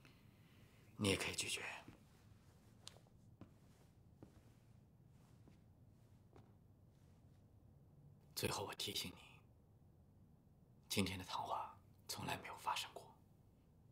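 A man speaks quietly and calmly, close by.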